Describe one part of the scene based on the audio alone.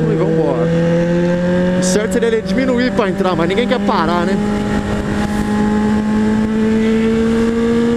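An inline-four sport motorcycle engine drones as it accelerates on a highway.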